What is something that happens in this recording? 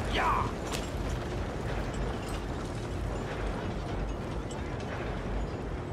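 Wagon wheels rattle and creak past.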